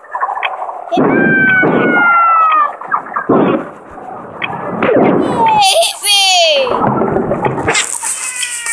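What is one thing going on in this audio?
Cartoon fireballs whoosh down and burst with rumbling crashes.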